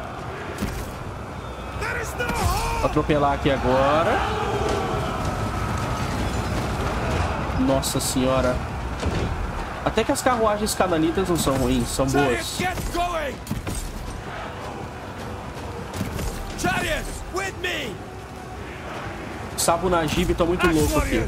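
Weapons clash in a distant battle.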